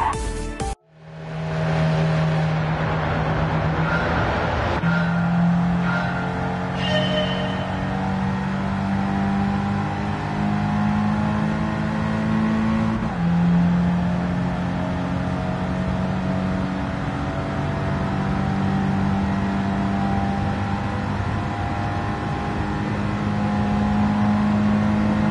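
A sports car engine hums and revs up through the gears.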